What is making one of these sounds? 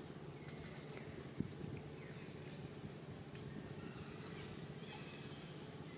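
Dry leaves rustle as a small monkey moves across the ground.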